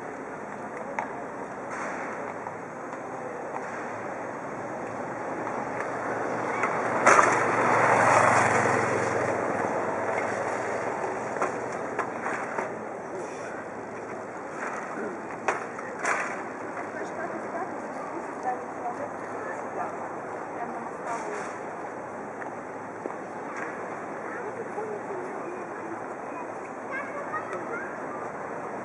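Distant people murmur and walk about outdoors.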